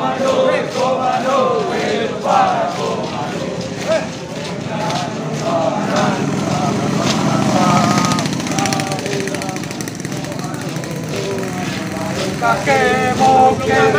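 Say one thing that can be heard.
A group of young men shout and sing outdoors.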